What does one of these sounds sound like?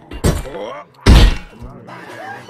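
A heavy punch lands with a loud thud.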